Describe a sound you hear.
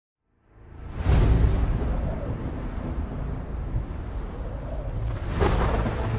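An airship's engines drone low overhead.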